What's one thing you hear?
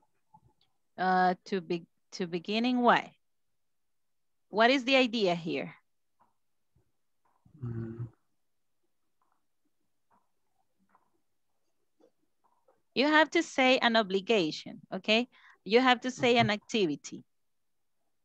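A woman speaks calmly over an online call, in short phrases with pauses.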